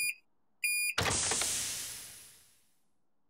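A microwave door pops open.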